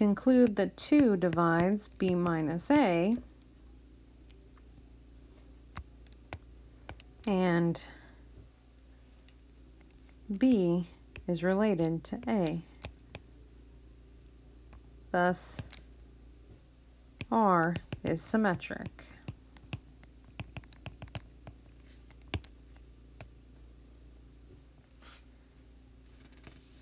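A stylus taps and scratches softly on a tablet.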